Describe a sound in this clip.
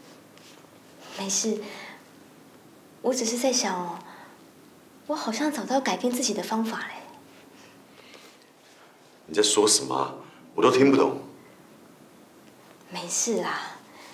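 A young woman speaks softly and warmly close by.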